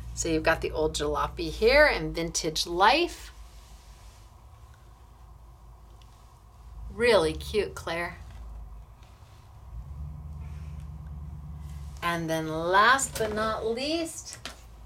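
Stiff card rustles and scrapes as hands lift and move it.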